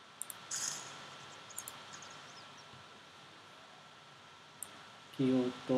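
Short game interface clicks sound.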